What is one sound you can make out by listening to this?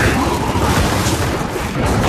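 Gunfire rattles in short bursts.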